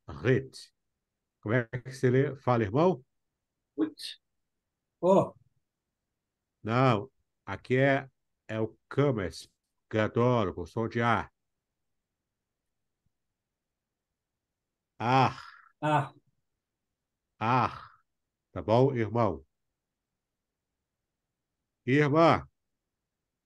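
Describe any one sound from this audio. A man speaks calmly through a microphone on an online call, in short phrases with pauses.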